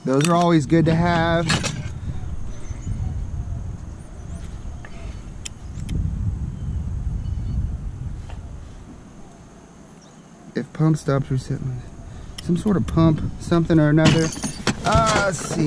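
Metal parts clink and rattle as they are handled.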